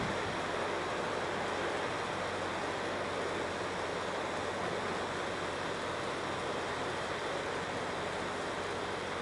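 A truck engine runs steadily nearby.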